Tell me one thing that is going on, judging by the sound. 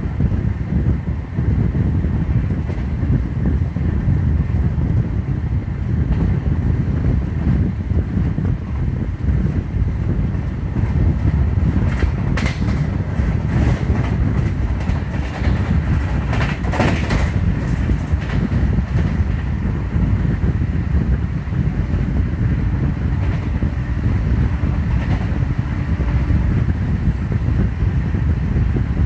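Wind rushes loudly past an open train door.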